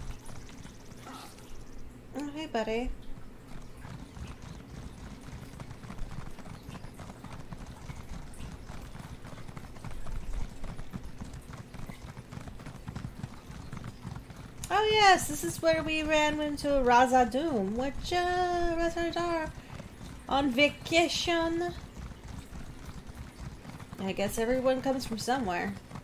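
Hooves clatter steadily as a horse gallops on a stone road.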